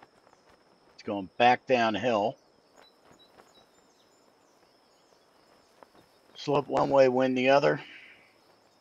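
A middle-aged man speaks with animation into a close headset microphone.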